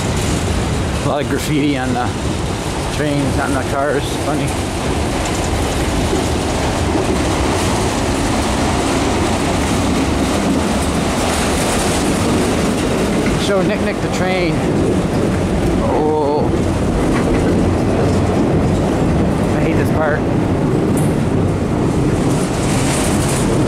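A freight train rumbles and clatters steadily across a bridge nearby.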